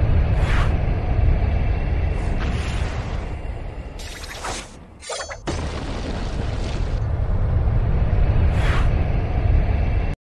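Battle effects whoosh and clash over a low, rumbling roar.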